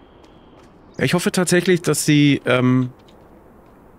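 A man speaks briefly and with animation into a close microphone.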